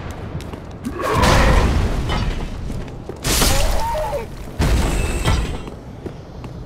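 Sword blows clang and slash in a fight.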